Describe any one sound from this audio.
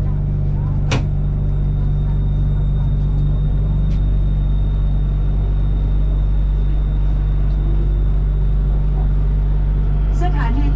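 A train's brakes squeal with a steady high whine.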